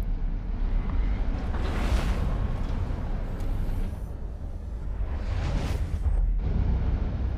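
A deep rumbling whoosh roars as a ship rushes through a warp tunnel.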